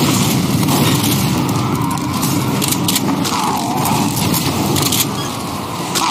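A shotgun fires in sharp, loud blasts.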